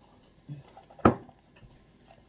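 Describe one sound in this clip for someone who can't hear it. A cup knocks down onto a table.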